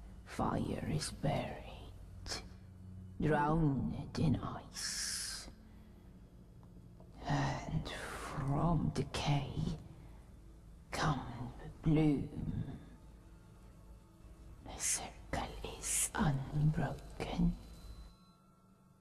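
A woman speaks slowly and softly in a low, breathy voice.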